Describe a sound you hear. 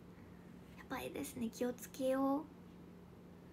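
A young woman speaks briefly and softly, close to a microphone.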